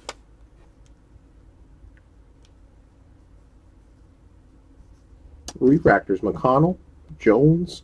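Trading cards rustle as they are shuffled.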